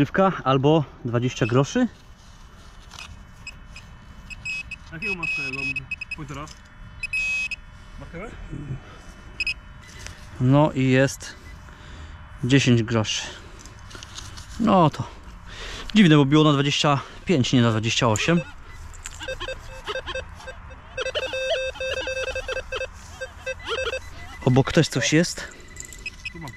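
A man talks in a low voice close by, in short bursts.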